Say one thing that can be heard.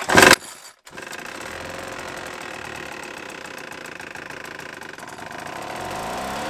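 A small petrol engine starts and idles steadily.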